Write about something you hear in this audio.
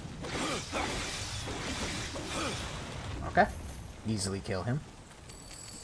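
Heavy blows thud and crunch against enemies.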